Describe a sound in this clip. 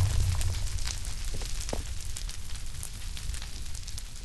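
Fire crackles and pops.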